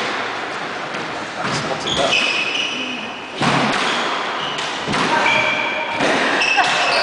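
A squash ball smacks sharply against the walls, echoing in a hard room.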